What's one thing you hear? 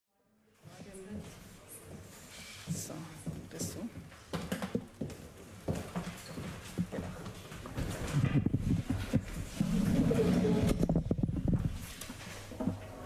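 Footsteps and knocks sound as people walk onto a stage.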